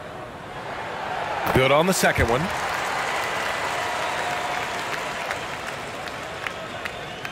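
A large crowd cheers loudly and then slowly quiets down.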